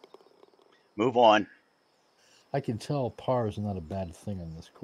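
A middle-aged man talks with animation through a headset microphone.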